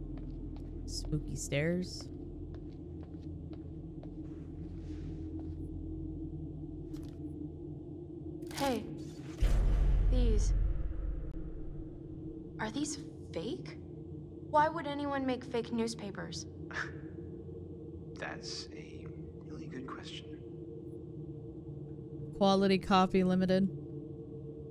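A young woman speaks in short bursts into a nearby microphone.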